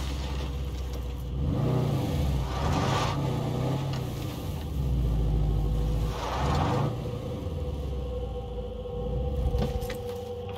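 A vehicle engine rumbles and revs as it drives.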